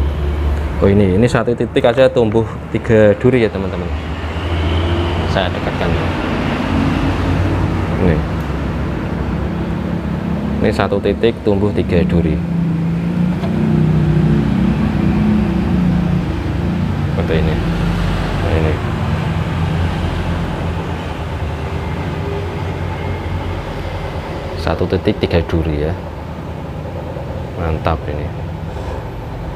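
A young man speaks calmly and close up through a clip-on microphone.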